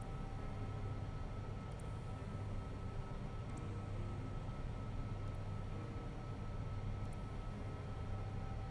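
Jet engines drone steadily in flight.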